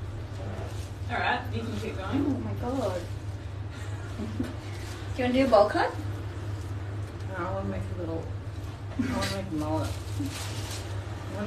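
A young woman talks close by, in a cheerful voice.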